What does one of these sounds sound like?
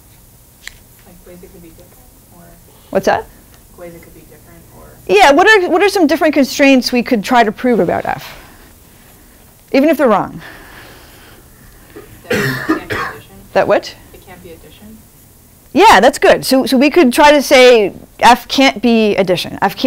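A young woman speaks calmly and explains, heard through a microphone in a room.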